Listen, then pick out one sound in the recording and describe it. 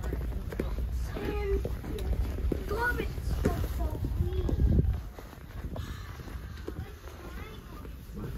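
A young boy talks excitedly nearby.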